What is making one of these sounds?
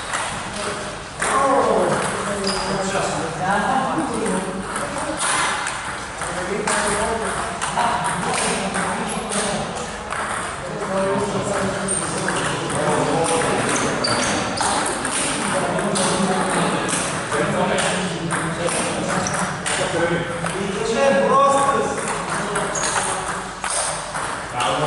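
A table tennis ball clicks back and forth off paddles and a table in an echoing hall.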